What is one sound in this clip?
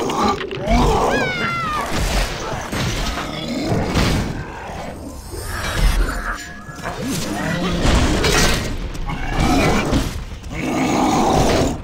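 Magic spells whoosh and boom in a fight.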